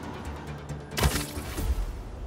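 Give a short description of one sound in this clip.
A heavy thud sounds as someone lands hard.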